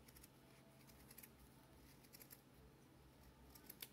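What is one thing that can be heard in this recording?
Scissors snip through fabric.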